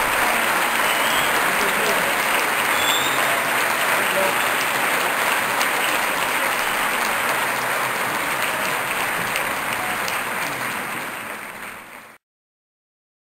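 An audience applauds loudly in a large hall, then the applause fades away.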